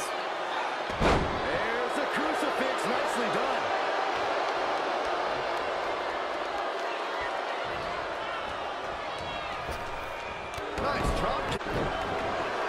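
Heavy thuds of bodies slamming onto a wrestling ring.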